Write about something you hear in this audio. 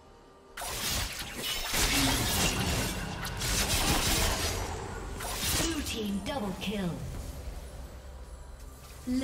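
Video game spells and weapon hits crackle and clash in a busy fight.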